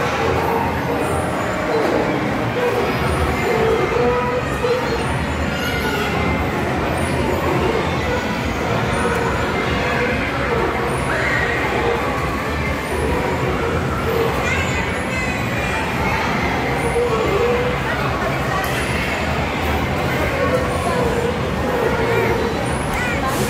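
A carousel rumbles steadily as it turns.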